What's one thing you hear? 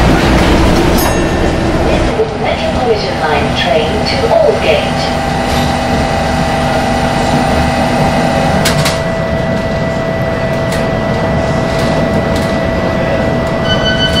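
An underground train idles with its doors shut.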